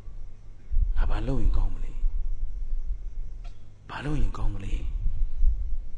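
A man speaks calmly and slowly into a microphone, in short drawn-out phrases.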